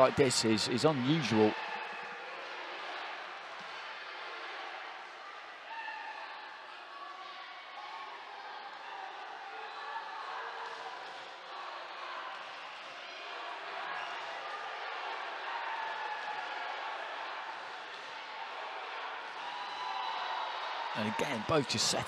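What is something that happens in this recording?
A crowd cheers and murmurs in a large echoing arena.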